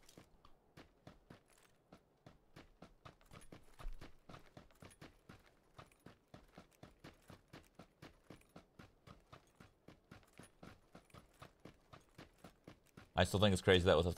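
Footsteps crunch quickly and evenly on dry ground.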